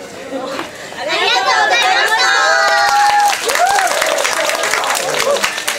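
A group of young women shout out together.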